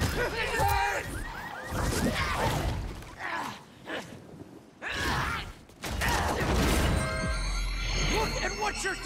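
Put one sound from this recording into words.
Heavy blows land with thuds.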